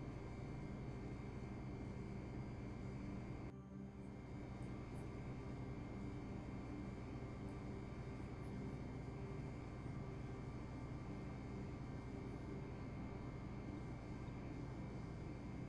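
A cloth bag of soy milk is squeezed and rustles over a steel bowl.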